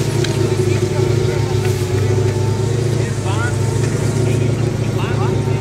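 A truck's V8 petrol engine drones while the truck climbs a rough dirt track.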